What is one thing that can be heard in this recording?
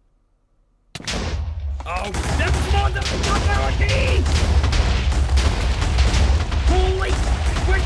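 Loud explosions boom and rumble one after another.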